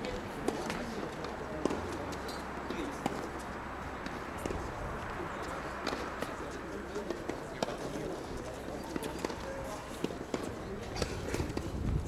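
Tennis balls are struck with rackets, far off.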